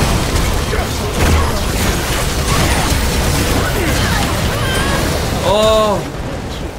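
Spell blasts and hits crackle and whoosh in a busy fight.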